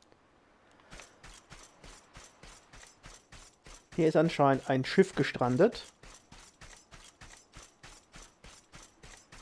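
Quick footsteps run across soft sand.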